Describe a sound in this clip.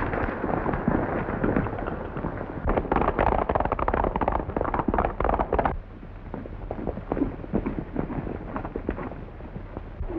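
Hooves pound quickly on a dirt road.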